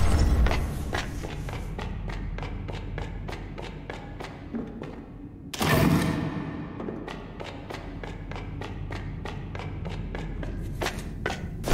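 Quick footsteps patter on a stone floor in an echoing hall.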